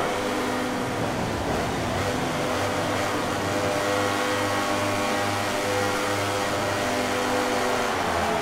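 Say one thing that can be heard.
A motorcycle engine revs loudly while standing still.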